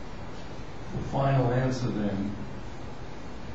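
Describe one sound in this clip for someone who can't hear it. An elderly man speaks briefly in a calm voice.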